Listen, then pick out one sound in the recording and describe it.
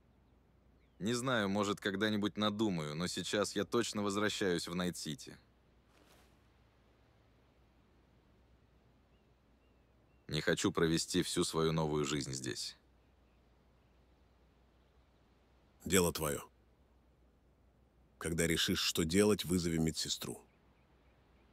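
A man speaks calmly and closely, in a deep voice, with pauses between phrases.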